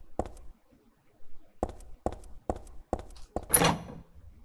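Footsteps fall on a wooden floor.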